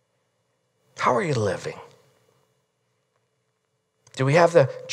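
A middle-aged man speaks calmly through a microphone in a large room, in short phrases with pauses.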